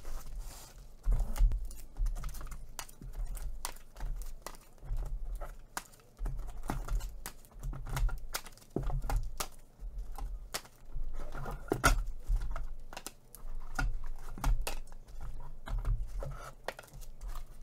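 Plastic bubble wrap crinkles and rustles.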